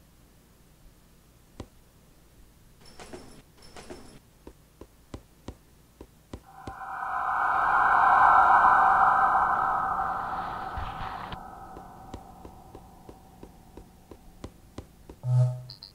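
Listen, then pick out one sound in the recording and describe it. Light footsteps tap quickly on stone.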